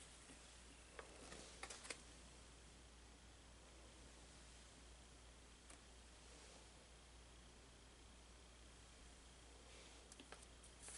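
Pages of a paper journal rustle and crinkle under a hand.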